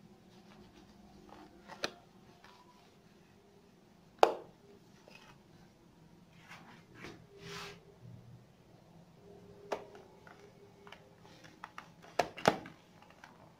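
A cloth wipes across a rough plaster wall.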